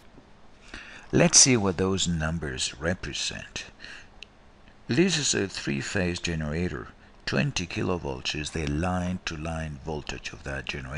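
An elderly man speaks calmly into a close microphone, explaining.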